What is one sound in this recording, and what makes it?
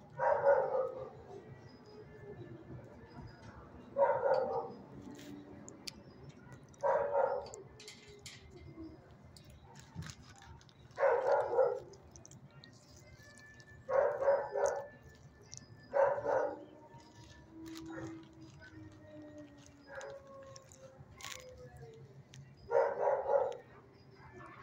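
A dog barks close by in short bursts.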